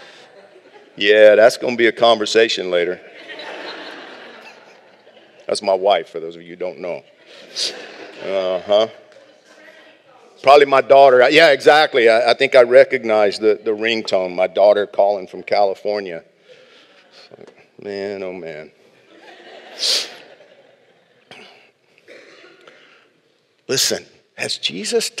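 A middle-aged man speaks calmly into a microphone in a large room.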